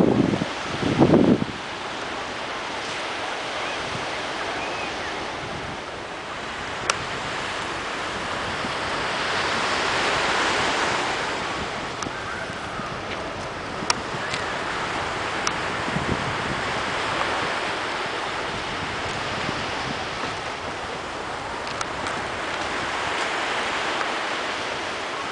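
Waves wash steadily onto a shore outdoors.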